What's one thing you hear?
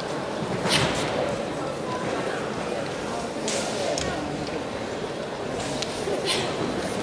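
Young girls shout sharply together in a large echoing hall.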